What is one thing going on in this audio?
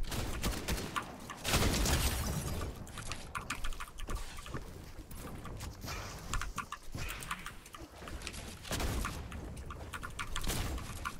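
Building pieces clatter and snap into place in quick bursts.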